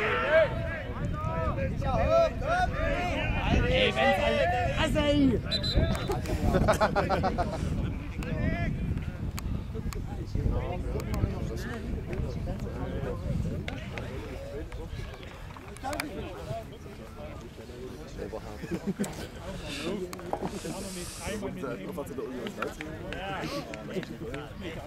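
Men and boys shout and call out across an open field outdoors.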